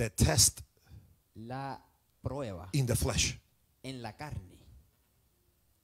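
A man preaches with animation through a microphone in a large hall.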